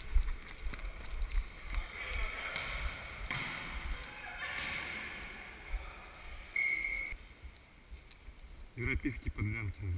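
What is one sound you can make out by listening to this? A volleyball is struck with dull thuds in a large echoing hall.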